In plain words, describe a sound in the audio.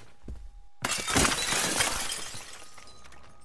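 A window is smashed and glass shatters.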